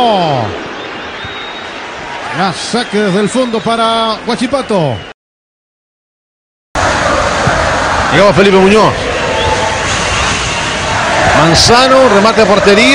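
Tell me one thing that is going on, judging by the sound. A stadium crowd cheers and murmurs outdoors.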